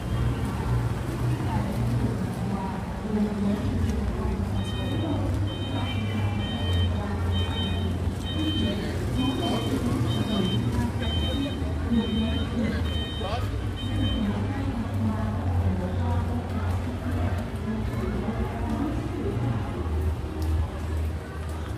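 Men and women chatter in a small crowd nearby.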